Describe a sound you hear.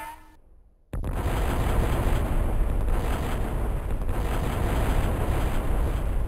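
A large explosion roars and rumbles.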